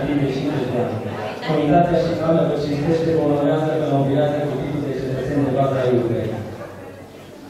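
An elderly man reads out loud into a microphone.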